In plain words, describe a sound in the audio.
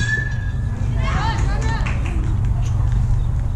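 Young players cheer and shout after the hit.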